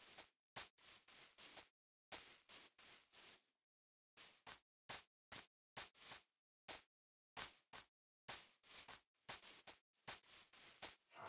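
Footsteps crunch on grass in quick bursts.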